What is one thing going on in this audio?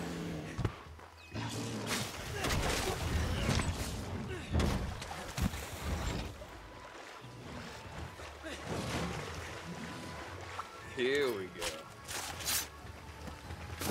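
Blades strike with sharp hits.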